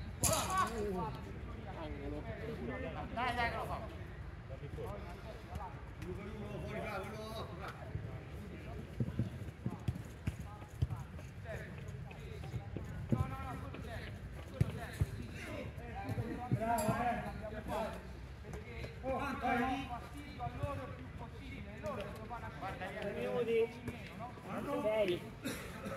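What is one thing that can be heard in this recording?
A man shouts across an open outdoor space.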